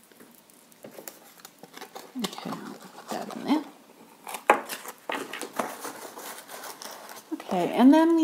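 Tissue paper rustles and crinkles close by.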